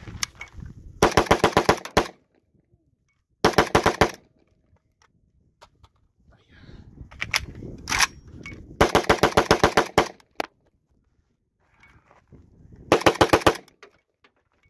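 A rifle fires rapid bursts of loud shots outdoors.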